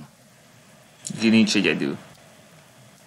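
A young man speaks briefly through a webcam microphone.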